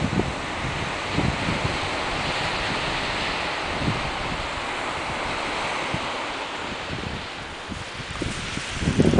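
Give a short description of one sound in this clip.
Wind blows steadily and gusts against the microphone outdoors.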